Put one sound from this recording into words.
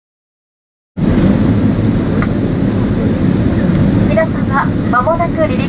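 A jet engine roars steadily inside an airliner cabin as it rolls along a runway.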